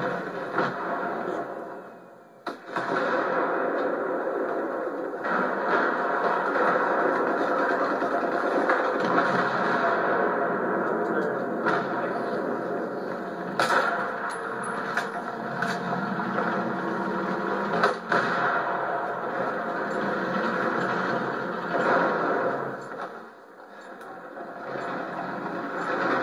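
Gunshots and battle noise from a video game play through a loudspeaker.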